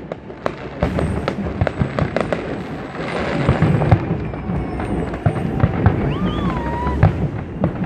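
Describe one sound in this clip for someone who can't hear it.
Fireworks boom in dull thuds.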